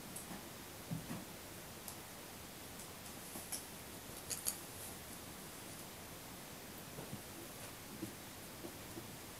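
A small dog shuffles about inside a crate, with soft knocks and scrapes.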